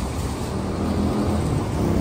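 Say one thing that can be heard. A motor scooter rides past.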